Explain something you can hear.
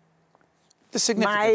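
An elderly woman speaks calmly, close to a microphone.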